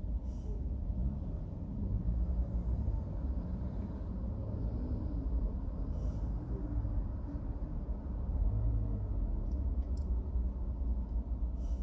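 Cars pass by slowly in the next lane.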